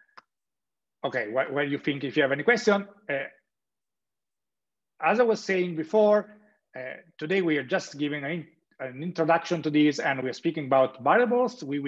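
A young man lectures calmly through a microphone on an online call.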